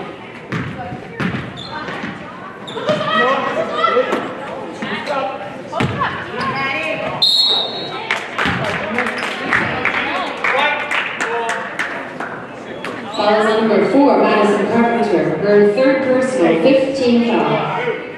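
Sneakers squeak on a hard court in an echoing gym.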